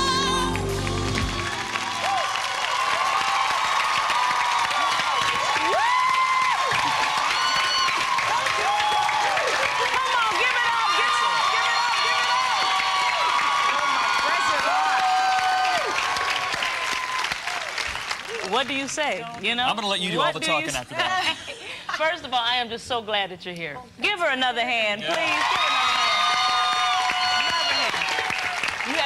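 A woman sings powerfully into a microphone.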